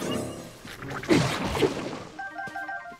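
An explosion bursts with a loud bang.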